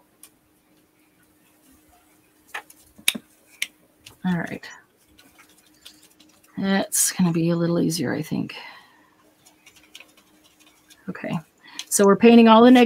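Paint dabs softly onto paper.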